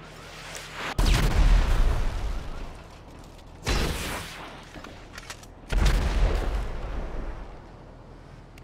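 A rifle fires loud single shots that boom and echo away.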